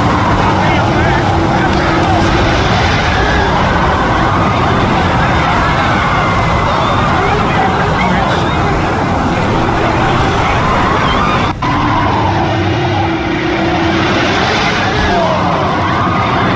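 Explosions boom and debris crashes.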